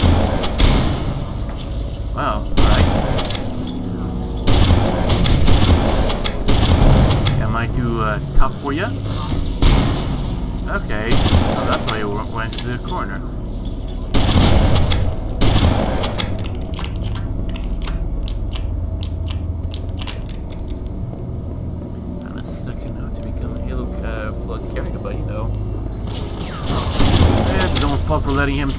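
A shotgun fires repeatedly in loud blasts.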